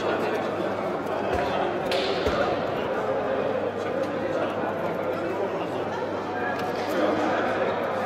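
Several men talk and call out together in a large echoing hall.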